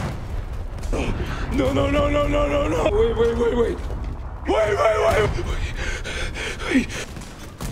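A man exclaims loudly into a microphone.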